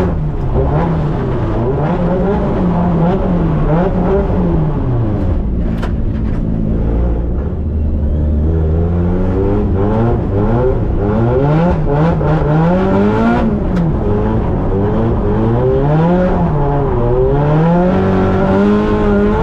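A Nissan Silvia S15's engine revs hard while drifting, heard from inside the cabin.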